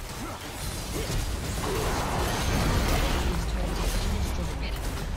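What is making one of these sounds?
Video game spell effects crackle and clash in a busy battle.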